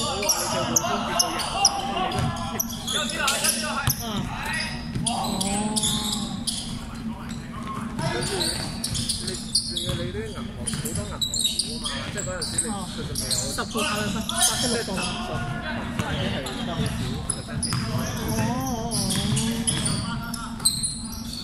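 Basketball shoes squeak sharply on a hard floor in a large echoing hall.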